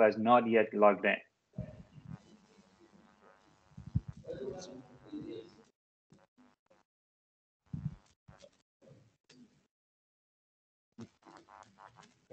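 A person speaks calmly over an online call, in short bursts.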